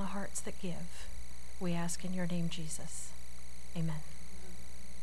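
A woman speaks calmly through a microphone and loudspeakers in a large room.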